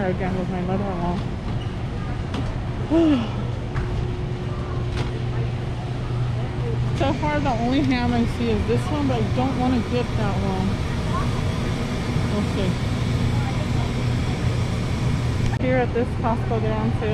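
Refrigerated display cases hum steadily.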